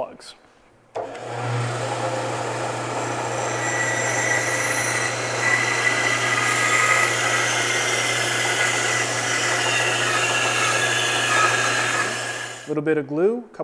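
A band saw hums steadily as it cuts through wood.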